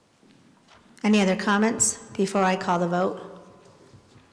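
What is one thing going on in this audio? A woman speaks into a microphone through a loudspeaker in a large echoing hall.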